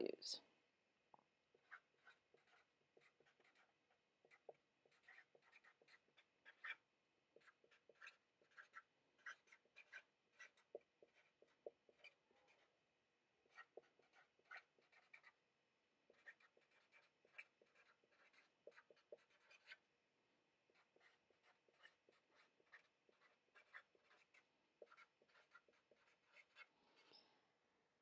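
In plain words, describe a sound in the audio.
A marker squeaks and scratches on a whiteboard in short strokes.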